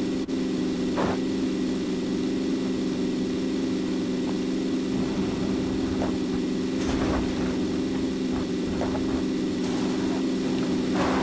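Tyres bump and thud over uneven grass.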